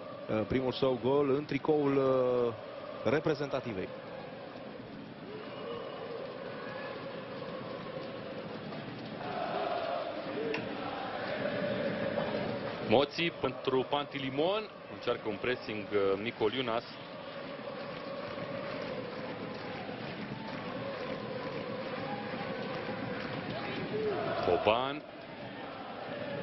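A large crowd chants and cheers in a stadium.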